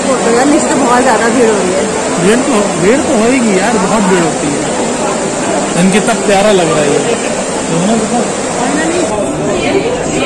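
A large crowd chatters and calls out loudly all around.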